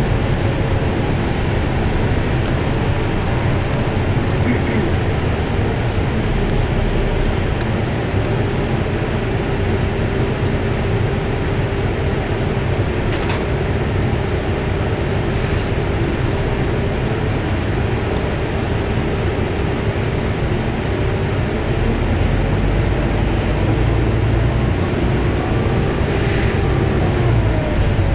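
A bus engine hums and rumbles steadily from inside the vehicle.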